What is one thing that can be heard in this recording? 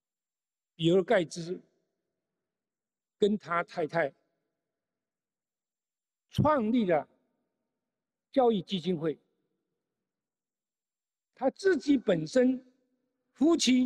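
An elderly man speaks slowly and deliberately into a microphone, in short phrases with long pauses.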